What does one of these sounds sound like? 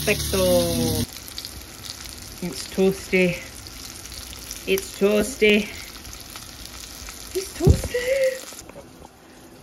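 Sprouts sizzle and hiss in a pan.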